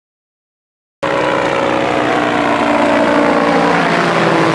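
A small propeller engine drones overhead, its pitch slowly dropping.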